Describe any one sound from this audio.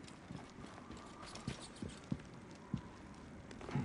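Footsteps thud slowly on stone.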